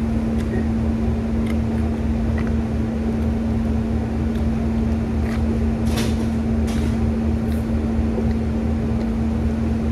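A woman sips a drink noisily through a straw.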